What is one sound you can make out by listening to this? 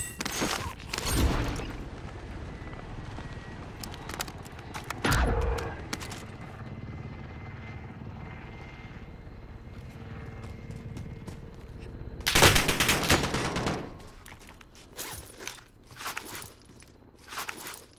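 Quick footsteps thud on the ground.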